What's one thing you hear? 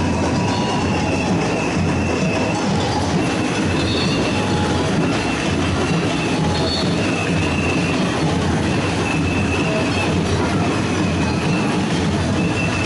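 A large crowd of marchers chants and shouts outdoors in a street.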